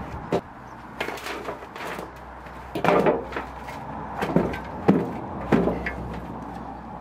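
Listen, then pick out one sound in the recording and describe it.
Soil pours from a shovel and rustles into a plastic pot.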